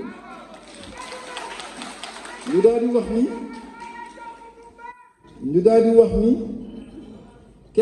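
An elderly man sings slowly into a microphone, heard through loudspeakers.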